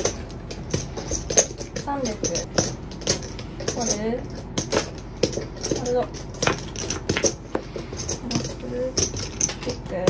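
Poker chips click and clatter on a felt table.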